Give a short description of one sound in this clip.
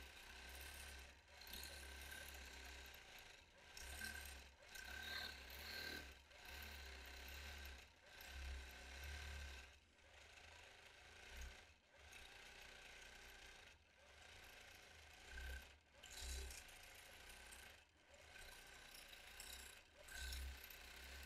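A quilting machine hums and whirs as it stitches.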